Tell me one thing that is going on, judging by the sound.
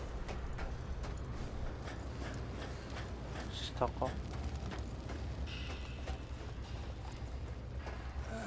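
Footsteps clank on metal stairs and grating.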